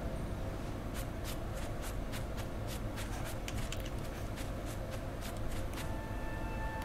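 Light footsteps patter quickly over grass.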